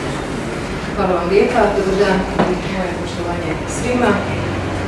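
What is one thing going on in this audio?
A middle-aged woman speaks calmly into a microphone, heard over a loudspeaker.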